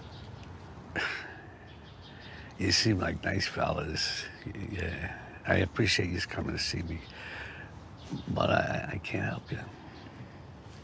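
An elderly man speaks slowly in a gravelly voice.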